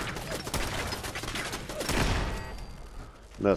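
A machine gun fires in rapid bursts.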